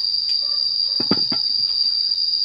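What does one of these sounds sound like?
A pot is set down on concrete with a dull thud.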